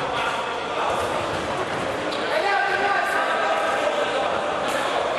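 A ball thuds off a player's foot.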